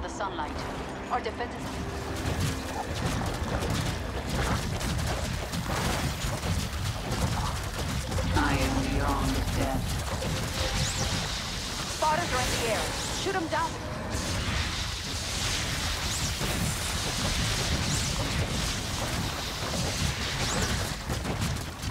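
Battle sounds of a video game rumble and crackle throughout.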